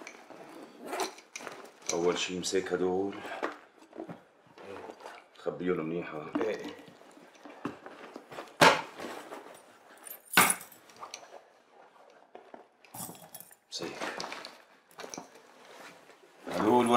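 A fabric bag rustles and its buckles click as it is rummaged through.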